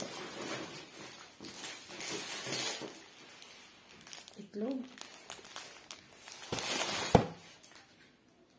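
Plastic bags rustle and crinkle close by.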